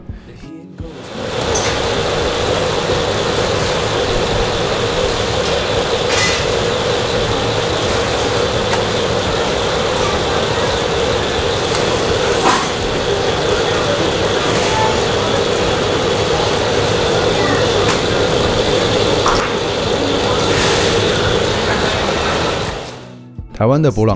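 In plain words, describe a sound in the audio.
A dough machine hums steadily.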